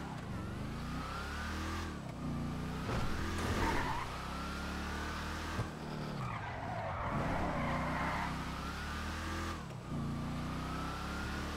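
A car engine revs hard, its pitch rising and dropping through the gears.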